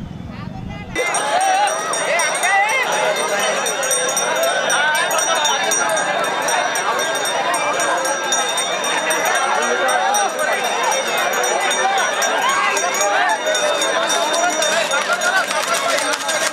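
A large crowd of men shouts and cheers excitedly outdoors.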